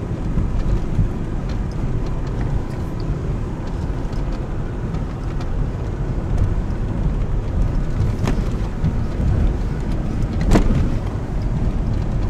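Tyres crunch and rattle over loose rocks and gravel.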